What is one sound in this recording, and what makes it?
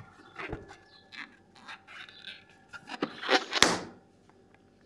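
Balloon rubber squeaks and rustles as hands handle it.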